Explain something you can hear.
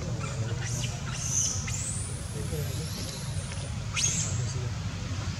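A baby monkey squeaks with high, thin cries.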